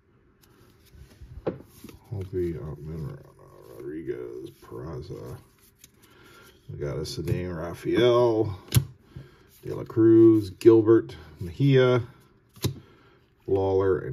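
Trading cards slide and flick against each other as they are shuffled.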